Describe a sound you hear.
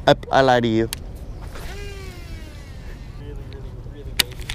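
A fishing reel's spool whirs and slows as line pays out during a cast.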